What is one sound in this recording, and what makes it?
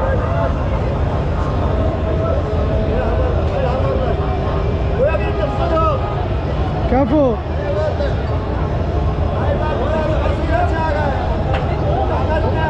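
A crowd of men and women murmurs and talks nearby outdoors.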